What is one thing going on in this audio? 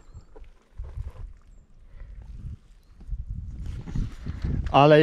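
Boots crunch and squelch on a muddy path.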